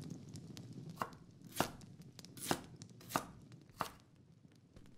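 A knife chops through a vegetable on a board with sharp knocks.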